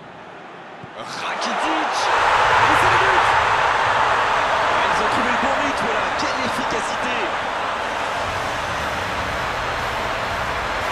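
A large stadium crowd roars loudly in cheers.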